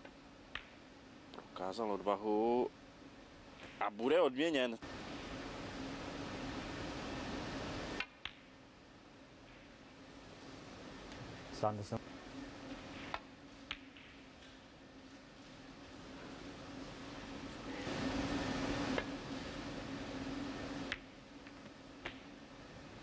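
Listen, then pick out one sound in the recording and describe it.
A cue tip strikes a snooker ball with a sharp click.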